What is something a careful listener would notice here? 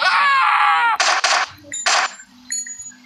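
Gunshots crack out in quick bursts.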